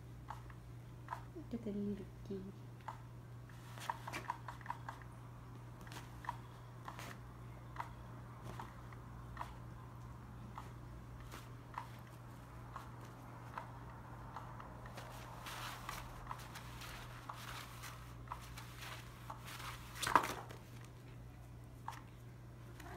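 A cat paws and scratches at rustling fabric.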